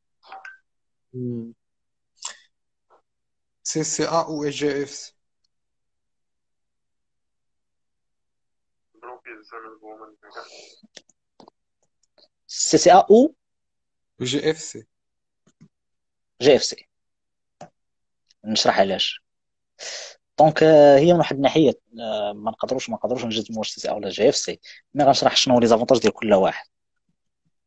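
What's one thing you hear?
A young man speaks close to a phone microphone, in short bursts with pauses.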